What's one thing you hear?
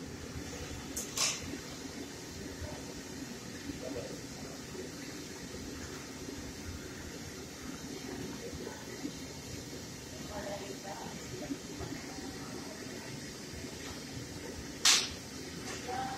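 A metal ladle scrapes and clinks against a pan.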